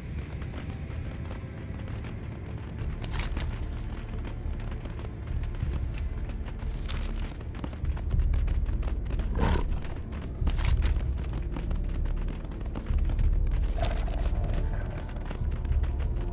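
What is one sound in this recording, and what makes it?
A game's interface gives short clicks as a map opens and closes.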